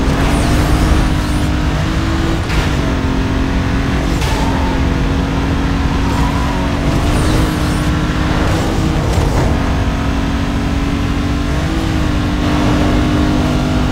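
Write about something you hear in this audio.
A car engine roars steadily at high speed, shifting gears now and then.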